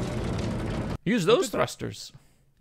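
A man speaks with animation through a microphone over an online call.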